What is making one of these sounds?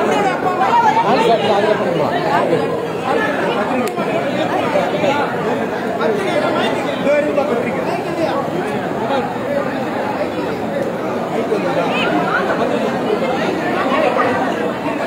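A crowd of men and women chatters loudly and close by.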